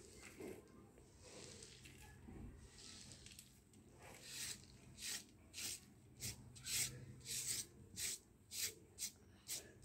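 Chopped herbs slide off a board onto a metal plate.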